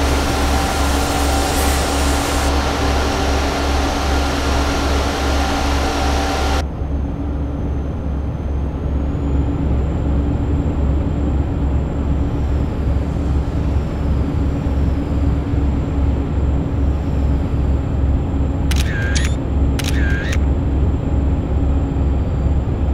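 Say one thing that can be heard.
Tyres roar on a road surface, loud at first and then muffled.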